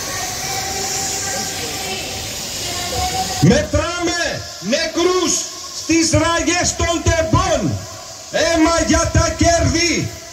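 A smoke flare hisses.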